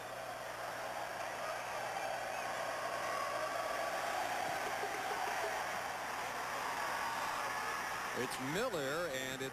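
A large stadium crowd roars and cheers outdoors.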